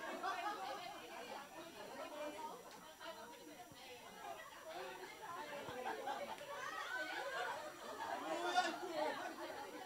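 A woman speaks into a microphone over loudspeakers in an echoing room.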